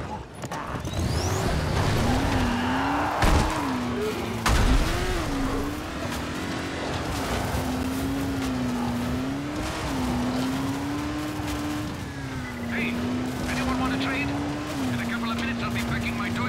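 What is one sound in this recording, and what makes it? Tyres crunch over a gravel track.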